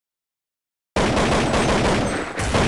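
A rifle fires rapid gunshots.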